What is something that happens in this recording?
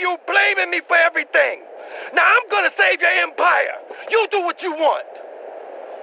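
A man speaks angrily.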